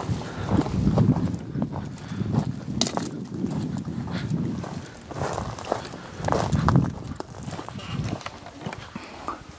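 Footsteps crunch and rustle through dry brush close by.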